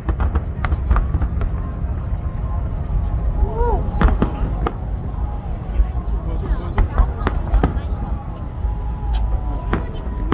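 Fireworks crackle and sizzle high overhead.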